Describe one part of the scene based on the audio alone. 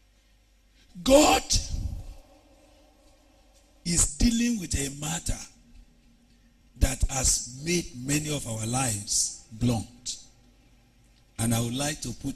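A man preaches loudly and with passion through a microphone, in bursts with pauses.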